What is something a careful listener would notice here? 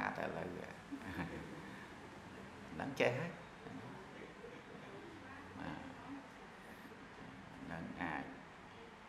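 A man speaks calmly and warmly into a close microphone.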